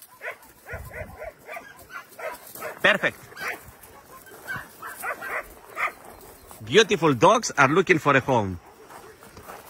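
A dog whines and yelps excitedly up close.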